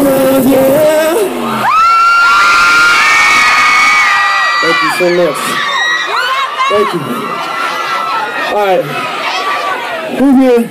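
A young man sings into a microphone over loudspeakers.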